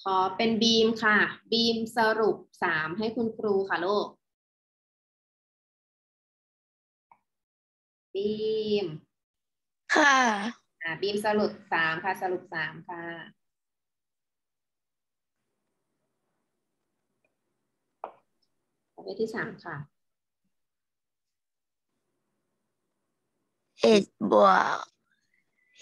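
A young woman speaks calmly through an online call, explaining with pauses.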